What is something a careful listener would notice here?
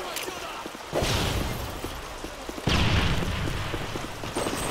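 Gunshots and explosions boom in a video game.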